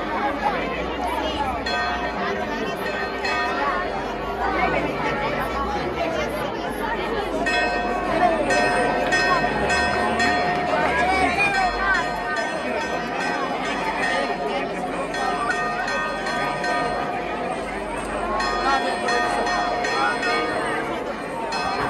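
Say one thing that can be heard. A crowd of adults talks and murmurs nearby outdoors.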